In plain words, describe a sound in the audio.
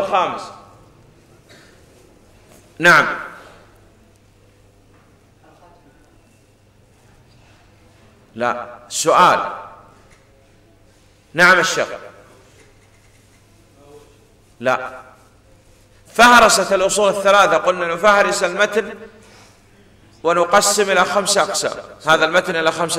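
A man speaks with animation into a microphone, in loud bursts with pauses.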